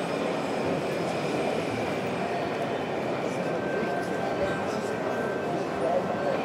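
A model railway wagon rolls along the track.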